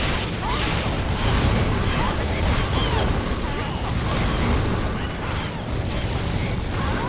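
Fiery spell blasts burst and crackle in quick succession.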